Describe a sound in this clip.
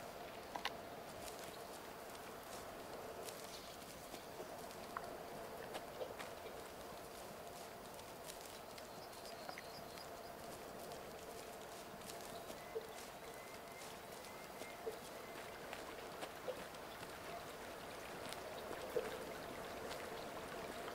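Footsteps brush through grass and crunch on gravel.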